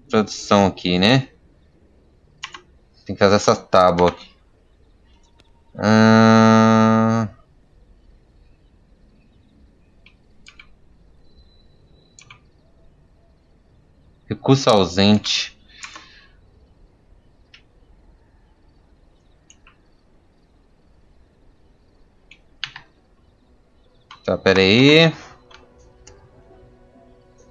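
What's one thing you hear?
Soft clicks sound as menus open and close.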